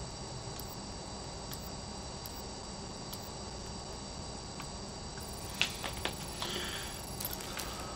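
Soft interface clicks tick as menu items are selected.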